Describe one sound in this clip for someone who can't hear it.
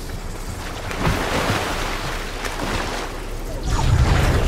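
Water splashes loudly as a character wades through it.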